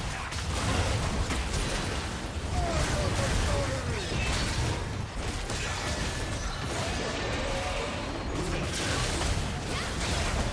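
Spells burst and crackle in a busy fight, with loud rumbling effects.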